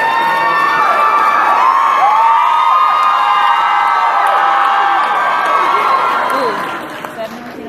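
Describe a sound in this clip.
A band plays loudly through speakers in a large echoing hall.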